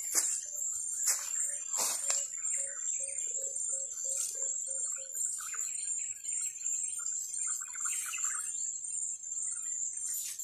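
Dry cassava cuttings knock and rattle together as they are picked up.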